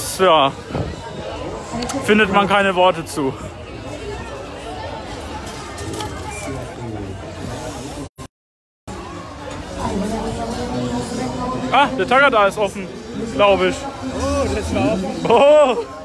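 A crowd chatters all around outdoors.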